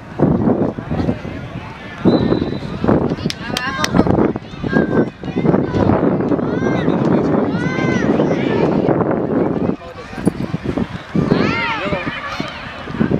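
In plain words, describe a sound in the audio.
Boys chatter and shout excitedly nearby, outdoors.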